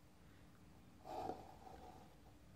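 A plastic ruler slides and scrapes softly across paper.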